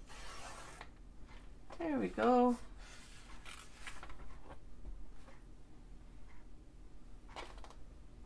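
A paper trimmer blade slides and cuts through paper.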